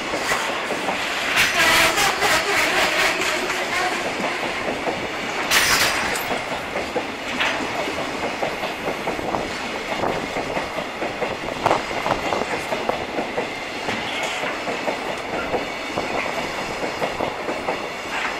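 A long freight train rumbles past close by, its wheels clattering rhythmically over the rail joints.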